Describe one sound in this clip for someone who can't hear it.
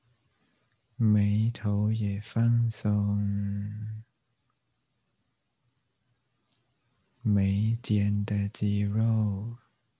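An elderly man speaks slowly and calmly, close to a microphone, with long pauses.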